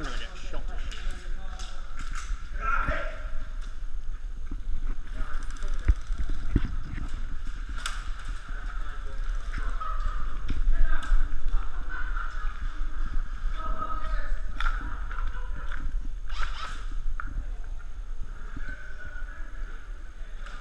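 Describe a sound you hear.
Airsoft guns fire in sharp rapid pops that echo through a large empty hall.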